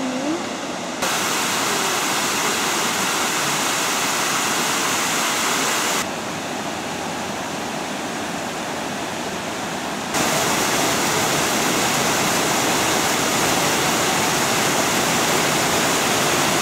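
Water rushes over rocky cascades.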